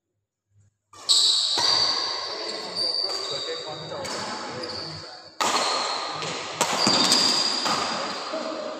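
Sports shoes squeak sharply on an indoor court floor.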